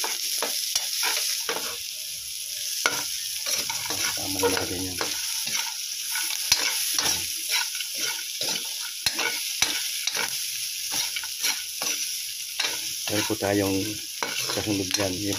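A metal spatula scrapes and clicks against a wok.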